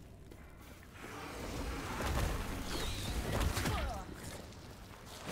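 Spells crackle and burst in a fight.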